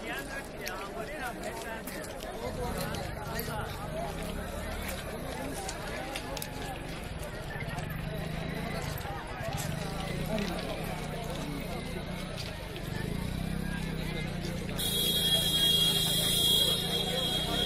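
A crowd of men and women talks and calls out all around, outdoors.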